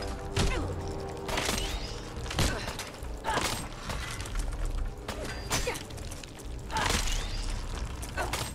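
A large creature screeches and hisses.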